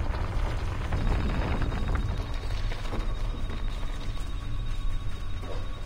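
A small robot's thrusters rumble steadily as it flies.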